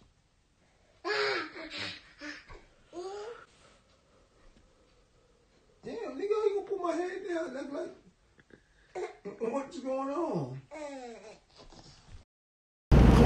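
A toddler girl babbles and shouts up close.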